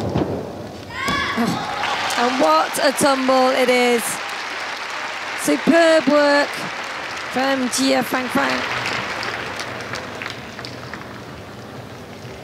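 A crowd in a large hall cheers and applauds.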